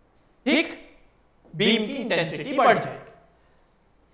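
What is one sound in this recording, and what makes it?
A man speaks calmly and clearly, close to a microphone.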